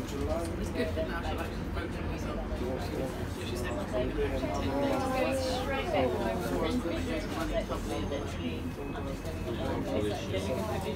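A train rumbles loudly along the track.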